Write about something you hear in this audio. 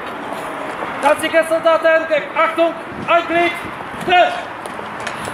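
A man shouts commands outdoors.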